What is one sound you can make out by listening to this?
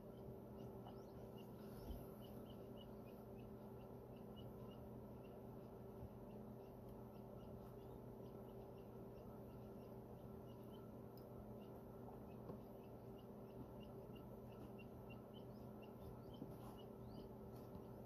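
A chick peeps softly and rapidly from inside a cracked egg.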